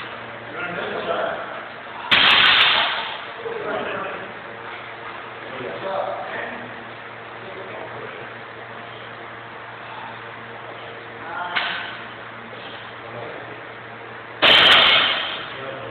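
A weighted barbell clanks against a metal rack.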